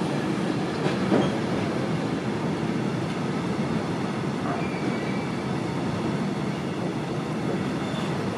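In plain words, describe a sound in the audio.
A freight train rumbles steadily past at close range.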